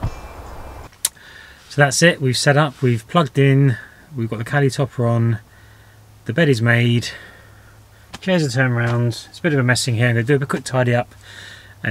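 A man talks calmly and closely to a microphone.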